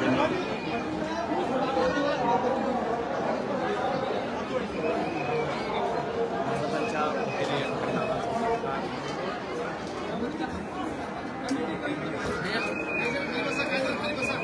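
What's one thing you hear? A crowd of men talk and call out over one another close by.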